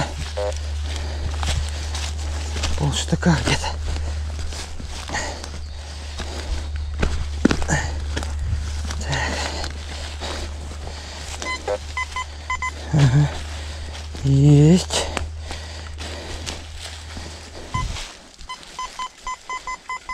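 Leafy plants rustle as they are brushed and trodden.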